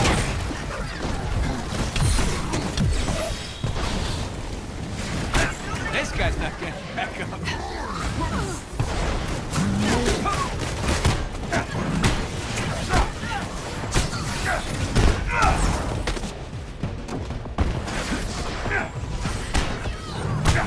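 Energy blasts fire and thump in quick bursts.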